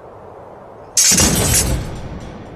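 A metal sword drops and clatters onto hard, dusty ground.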